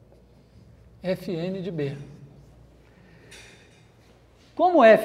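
A young man speaks calmly to a room.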